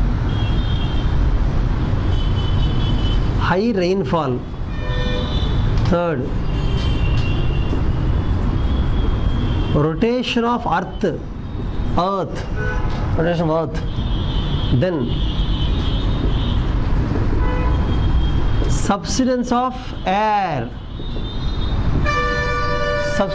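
A man speaks steadily, lecturing close by.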